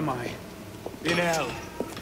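A man speaks harshly.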